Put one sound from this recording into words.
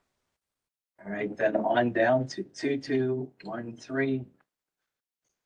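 A man speaks calmly through a microphone in an online call.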